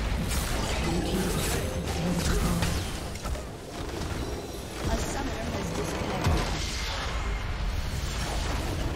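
Blows and blasts thud in quick bursts.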